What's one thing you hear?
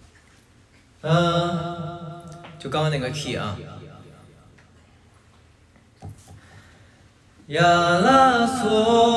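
A young man sings through a microphone, holding long notes.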